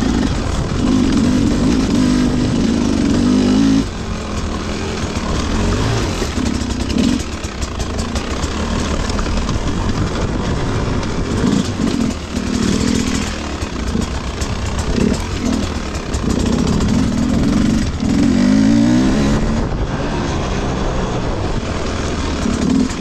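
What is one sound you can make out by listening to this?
A dirt bike engine revs up and down close by as it climbs over rough ground.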